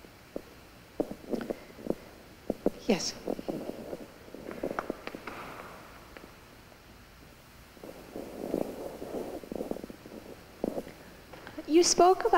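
An elderly man speaks calmly through a microphone in a large echoing hall.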